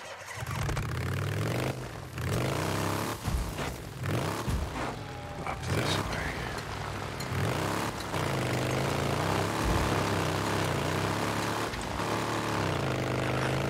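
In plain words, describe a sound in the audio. A motorbike engine hums and revs as it rides over rough ground.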